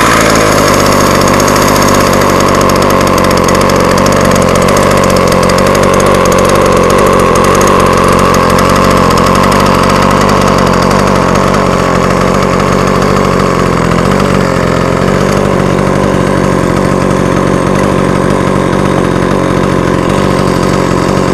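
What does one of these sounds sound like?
A chainsaw engine idles loudly and steadily close by.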